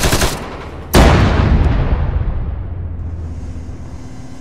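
A large explosion roars and rumbles away.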